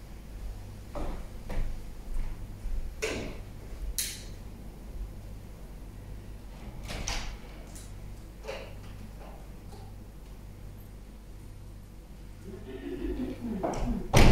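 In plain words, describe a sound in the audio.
Footsteps thud softly across a floor.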